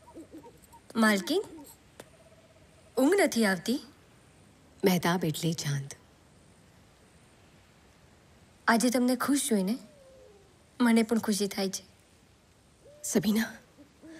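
A woman speaks softly in short, quiet phrases, close by.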